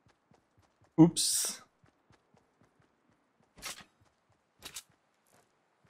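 Rifle shots crack sharply a few times.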